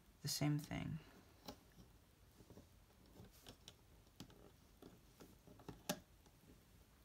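Small plastic pieces click softly under fingers.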